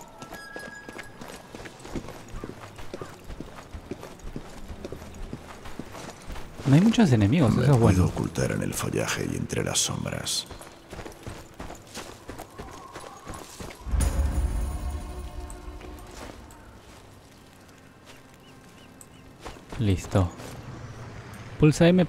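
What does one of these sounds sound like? Footsteps crunch over stone and grass.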